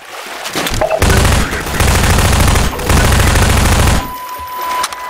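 A submachine gun fires rapid bursts that echo down a stone tunnel.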